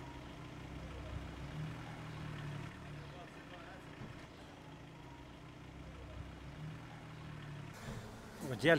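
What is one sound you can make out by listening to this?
A car engine hums as a car drives slowly along a street.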